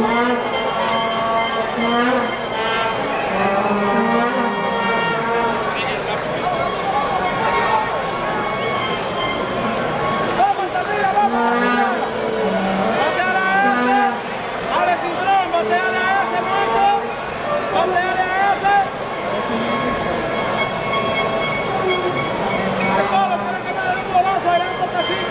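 A large crowd murmurs and calls out across an open stadium.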